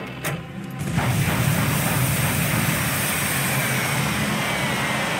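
Rockets launch with a loud rushing whoosh.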